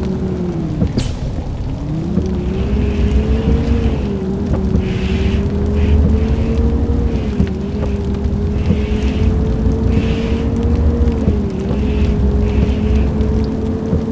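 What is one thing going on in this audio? A bus engine hums steadily, its pitch rising and falling as the bus moves.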